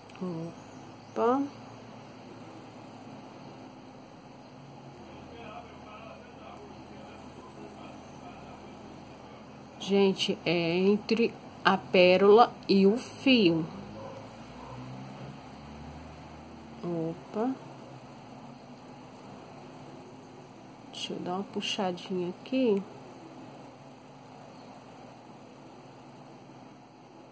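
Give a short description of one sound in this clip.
Plastic beads click softly against each other.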